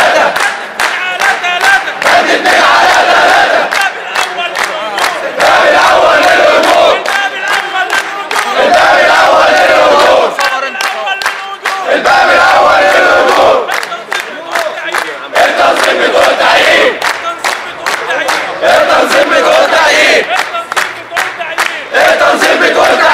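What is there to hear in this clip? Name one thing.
A crowd of men chants loudly in unison outdoors.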